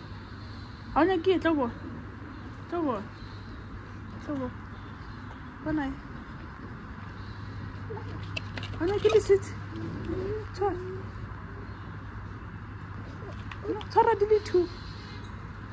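A toddler babbles and talks close by.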